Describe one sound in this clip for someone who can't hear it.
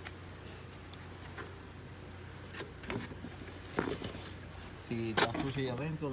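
A plastic cover clicks and knocks as it is lifted and handled.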